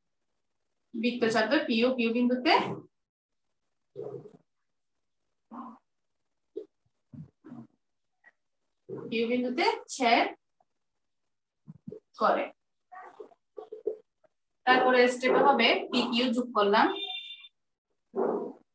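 A woman speaks calmly and clearly, close to a microphone, in short phrases with pauses.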